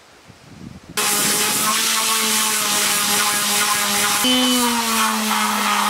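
An electric sander whirs loudly, rising and falling in pitch.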